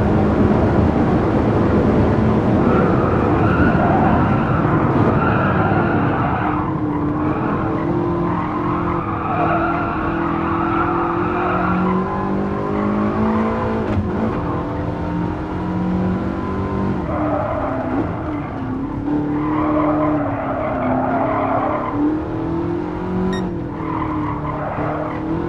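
A supercharged V8 race car engine accelerates and shifts through gears.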